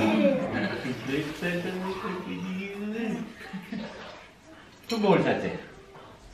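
A woman laughs nearby.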